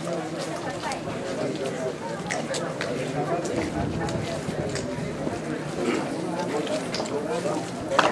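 Men and women talk among themselves nearby.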